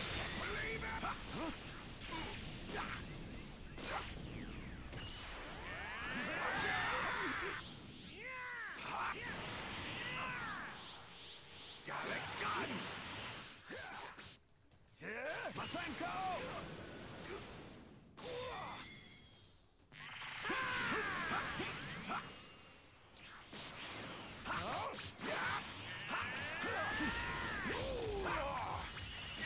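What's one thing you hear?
Energy blasts whoosh and boom in rapid bursts.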